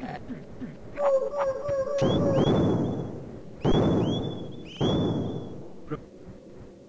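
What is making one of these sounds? Game sound effects burst and chirp as creatures are hit.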